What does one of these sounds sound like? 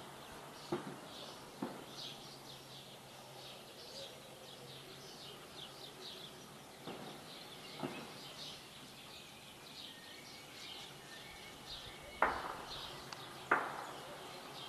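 Distant blasts boom and echo now and then.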